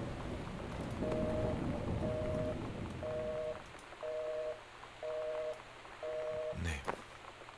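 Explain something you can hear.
A cordless phone beeps in short, evenly spaced tones.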